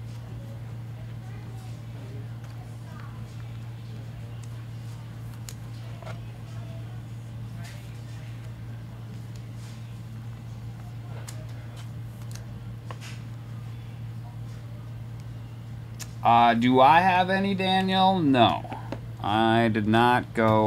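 Plastic card cases click and tap softly.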